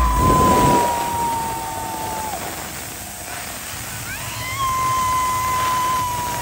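An electric guitar sustains a loud, piercing feedback note that drops away and then slides back up.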